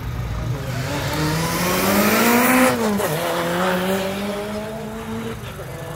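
A rally car speeds past close by, its engine note dropping as it goes.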